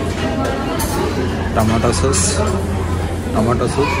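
A metal lid clatters on a steel pot.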